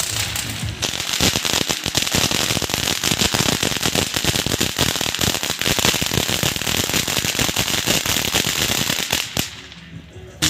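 A firework fountain hisses as it sprays sparks.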